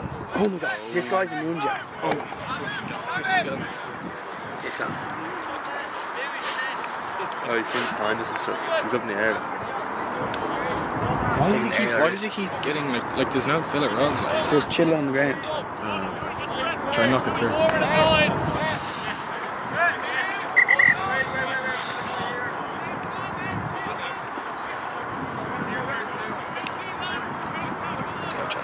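Spectators chatter nearby.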